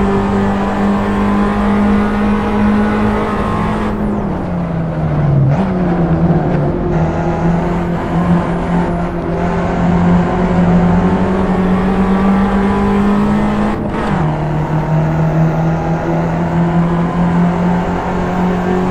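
A small four-cylinder hatchback engine drones at high revs under load.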